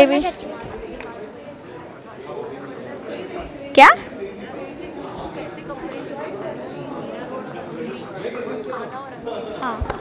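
A young girl whispers into a boy's ear.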